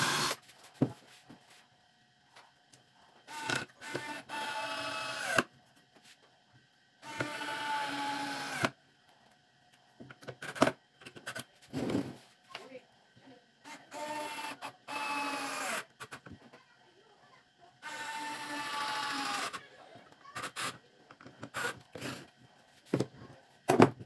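Clamps and wood knock and clatter on a workbench.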